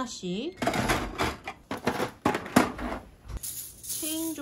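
Plastic toys rattle and clatter as they are handled and dropped into a plastic box.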